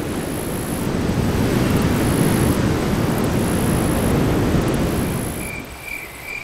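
Waves wash and churn over rocks.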